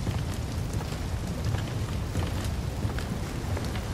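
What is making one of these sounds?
Footsteps thud slowly on wooden boards.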